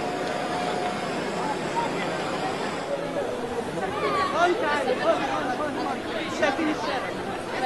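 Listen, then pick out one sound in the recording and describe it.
A large crowd chants and shouts outdoors.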